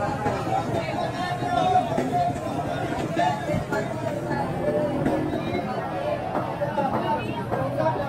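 People chatter in a busy, noisy crowd nearby.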